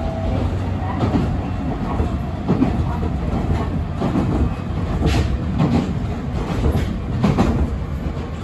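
A train's wheels clack and knock over rail joints.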